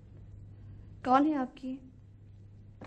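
A young woman speaks softly into a phone.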